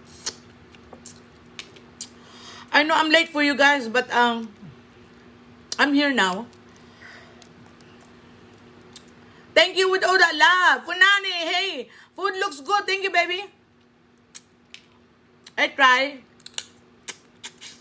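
A woman slurps and sucks loudly while eating.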